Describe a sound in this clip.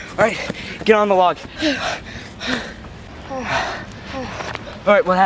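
A boy talks excitedly close by, outdoors.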